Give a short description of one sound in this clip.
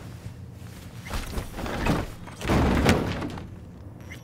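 A body thuds into a metal container.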